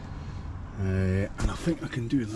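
An electric seat motor whirs briefly.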